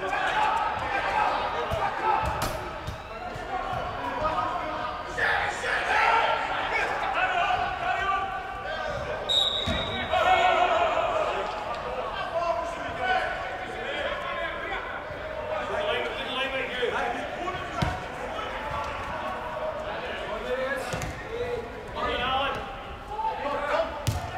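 Women shout and call out to each other across a large echoing indoor hall.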